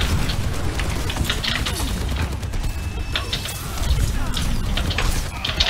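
Rapid gunfire and energy blasts crackle in a fast game fight.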